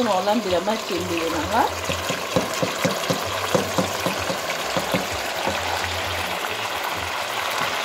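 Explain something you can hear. Chopped vegetables slide off a plate and splash into a pot.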